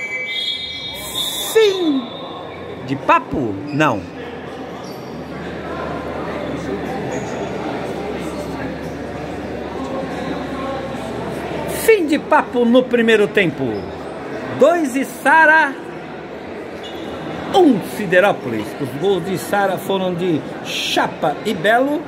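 Shoes squeak on a hard court floor.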